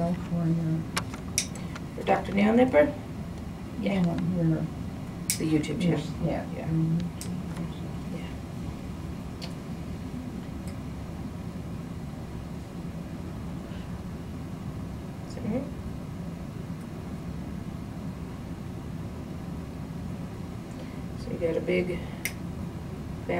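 Nail clippers snap sharply as they cut through a toenail.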